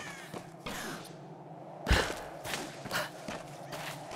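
A person lands heavily on the ground after a jump.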